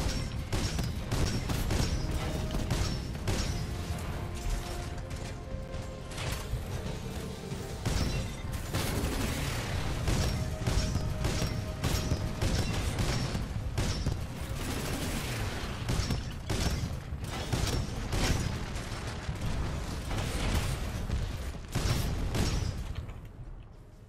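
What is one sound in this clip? Rapid gunfire rattles and booms over loud rumbling.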